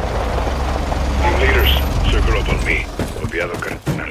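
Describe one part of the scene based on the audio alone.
Car doors swing open with a thud.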